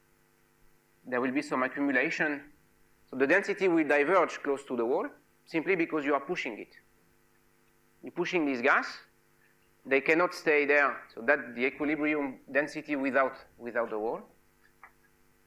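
A man lectures calmly into a microphone in an echoing room.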